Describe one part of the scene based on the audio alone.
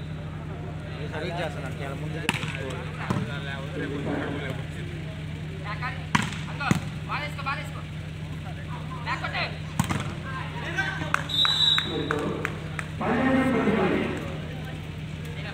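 Young men call out to each other on the court.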